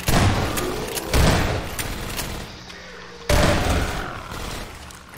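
A shotgun fires loud booming blasts, one after another.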